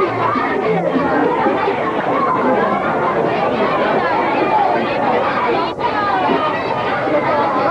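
A woman speaks through a loudspeaker with a microphone.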